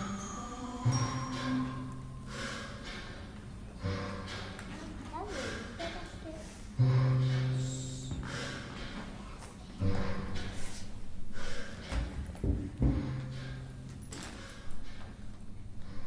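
Young children murmur and giggle in a quiet room.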